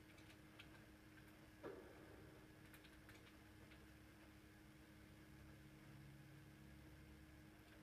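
Game sounds play faintly from a television's speakers.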